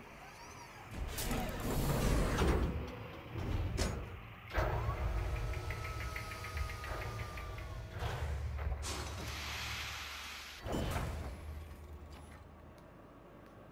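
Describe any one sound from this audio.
A spaceship's engines rumble and roar.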